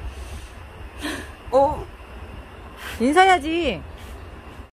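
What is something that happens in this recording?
A middle-aged man speaks briefly and calmly, close by.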